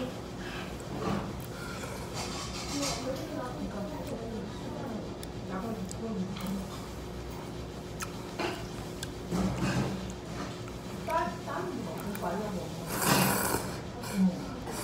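A man slurps noodles loudly up close.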